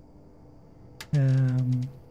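A short click sounds as a menu opens.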